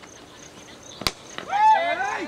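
A bat strikes a cricket ball with a sharp crack.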